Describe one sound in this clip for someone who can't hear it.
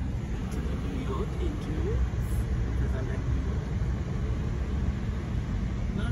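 A car engine hums steadily from inside the car as it drives slowly.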